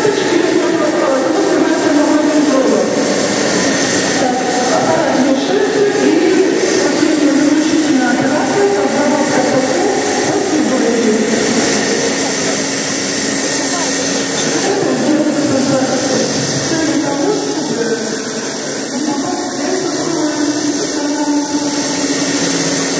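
A crowd of people chatter and talk nearby.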